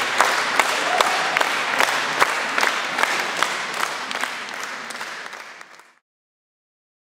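A large audience claps in an echoing hall.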